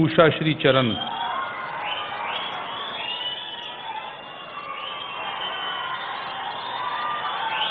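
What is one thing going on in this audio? A crowd of people chatter and murmur nearby.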